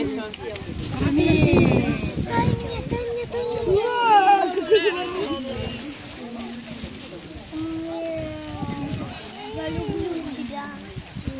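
Young children chatter and call out close by, outdoors.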